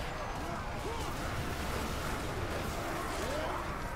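Flames roar in a burst of fire.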